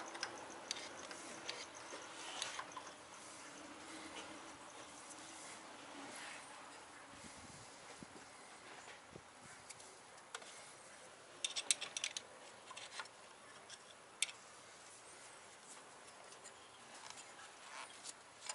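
Metal tools click and clink against an engine.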